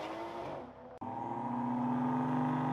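A car engine revs loudly and steadily nearby.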